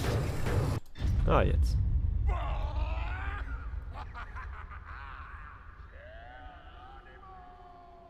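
A man screams as he falls, his cry fading away into the distance.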